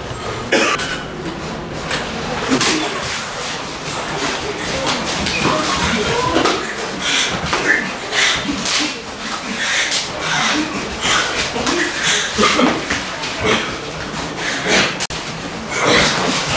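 Bare feet shuffle and slide on packed clay.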